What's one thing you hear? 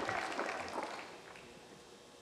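A man claps his hands.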